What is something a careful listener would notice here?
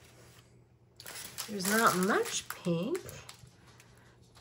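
A plastic packet rustles and crinkles.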